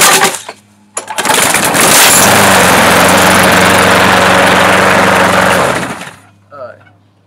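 A lawn mower engine roars loudly, then sputters out.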